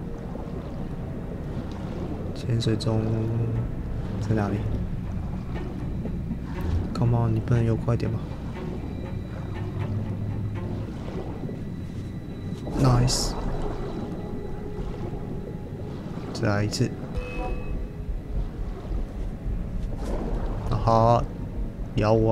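A low, muffled underwater rumble drones steadily.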